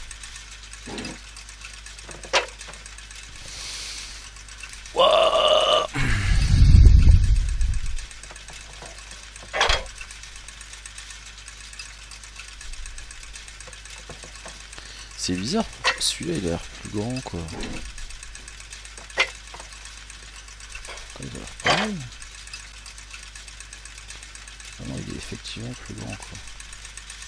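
Metal gears click and clunk into place.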